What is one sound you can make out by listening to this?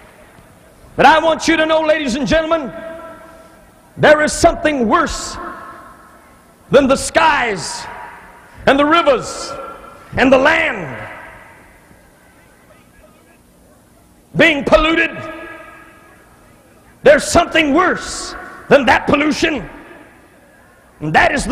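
A man preaches forcefully into a microphone in short, loud bursts, echoing through a large hall.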